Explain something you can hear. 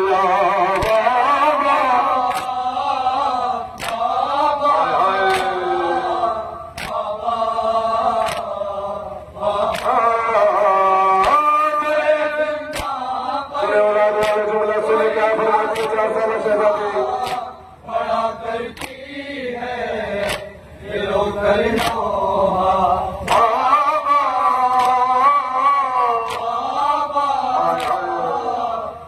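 A young man chants a mournful recitation loudly through a microphone.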